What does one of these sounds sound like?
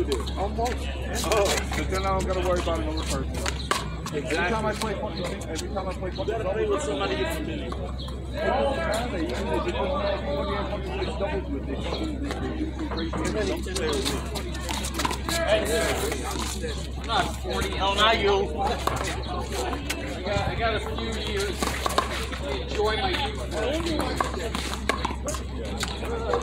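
A small rubber ball smacks against a wall and bounces on pavement.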